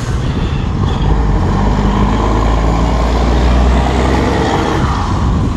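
A heavy truck rumbles past on a road nearby.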